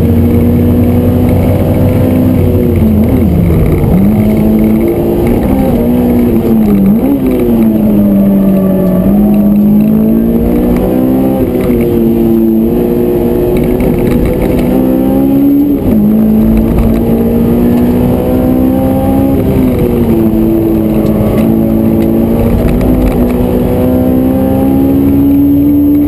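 Wind and road noise rush steadily around the car.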